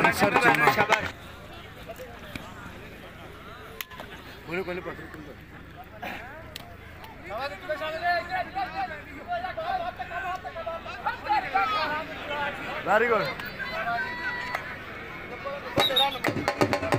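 Men in a crowd shout and call out outdoors.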